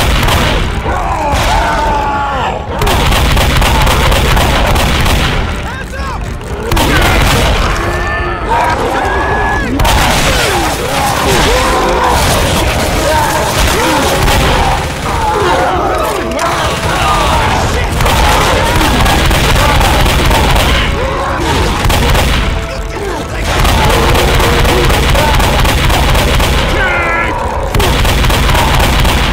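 A shotgun fires repeated loud blasts.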